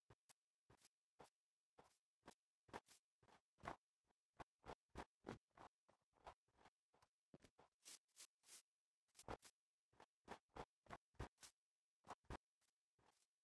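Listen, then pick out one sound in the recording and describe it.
Footsteps crunch on snow at a steady walking pace.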